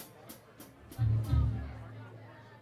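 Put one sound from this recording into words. A bass drum thumps once.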